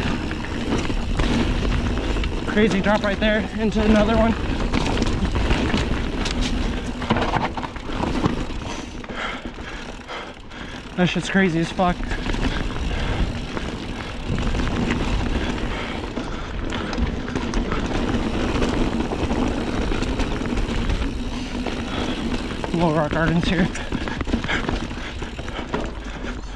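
Bicycle tyres roll and crunch over a dirt and rocky trail.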